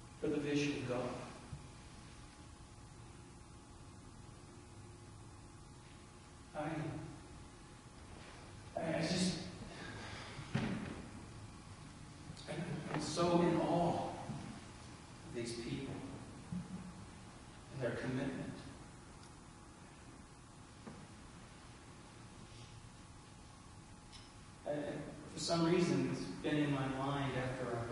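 A middle-aged man speaks slowly with pauses through a microphone in a large echoing hall.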